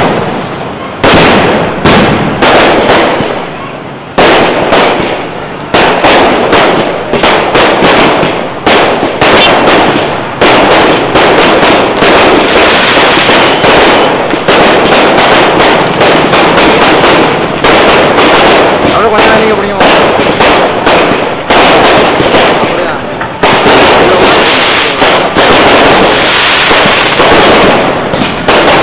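Fireworks bang and crackle in rapid bursts close by.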